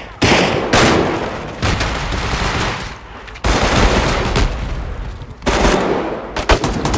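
Loud gunshots go off in sharp bursts.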